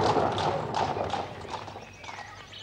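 Horse hooves clop on paving stones as a horse-drawn carriage moves.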